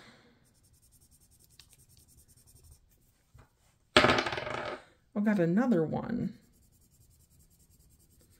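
A marker taps and scratches on paper.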